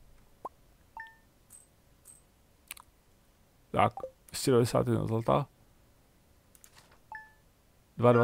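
A short electronic chime rings out twice.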